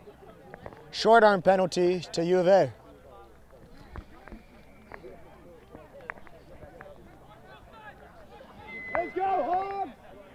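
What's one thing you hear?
Young men shout at a distance across an open field.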